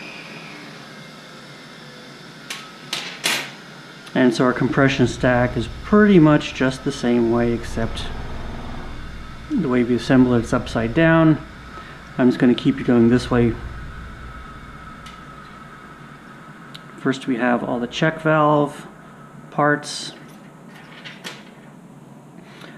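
Small metal parts click and tap together.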